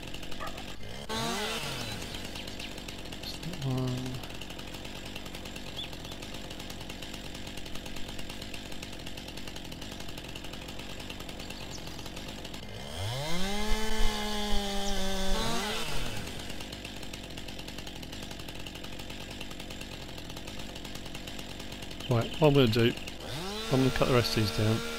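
A chainsaw engine revs up loudly and winds down again several times.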